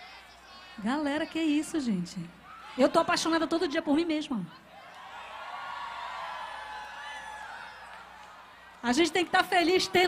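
A young woman sings loudly through a microphone, in short bursts.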